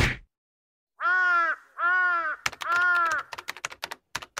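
A young woman cries out close by.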